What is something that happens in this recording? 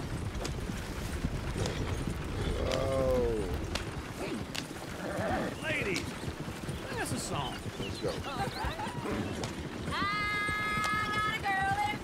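Horse hooves clop steadily on a dirt track.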